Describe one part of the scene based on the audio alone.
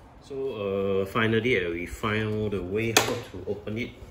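A plastic lid clicks open on a vacuum cleaner.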